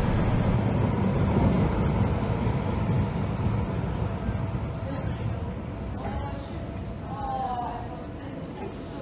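A train rumbles as it slows to a stop.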